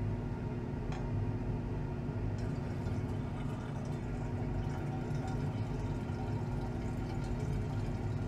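Liquid pours and trickles into a glass flask.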